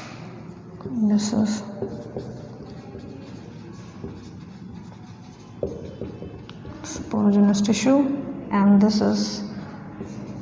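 A young woman speaks calmly, close to a microphone.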